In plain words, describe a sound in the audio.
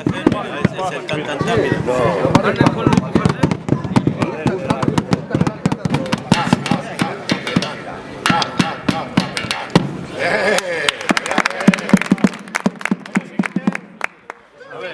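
Drumsticks beat on drums, fast and uneven.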